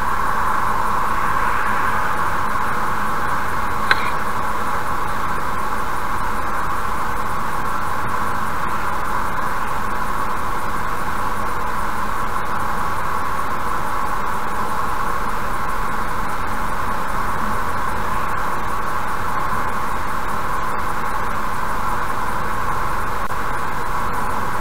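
A car's engine and tyres hum steadily on a highway from inside the cabin.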